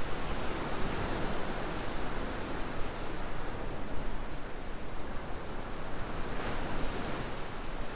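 Ocean waves wash against rocks.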